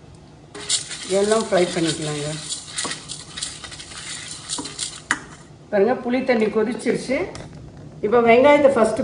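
A spatula scrapes and stirs inside a metal pan.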